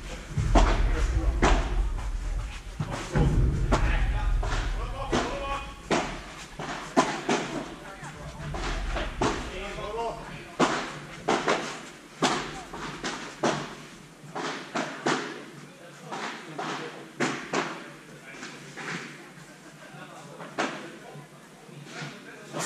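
Paddle rackets hit a ball back and forth with sharp pops, echoing in a large hall.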